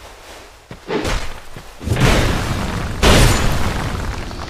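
A heavy sword swings and strikes with loud whooshing impacts.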